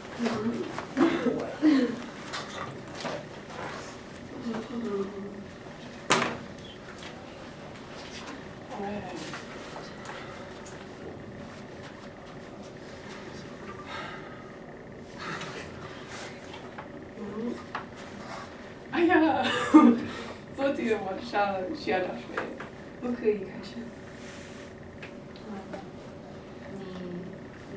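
A young woman reads aloud.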